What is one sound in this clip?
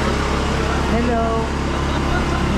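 A man calls out close by.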